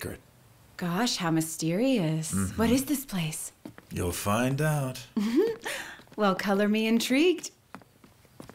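A man speaks in a low, firm voice, close by.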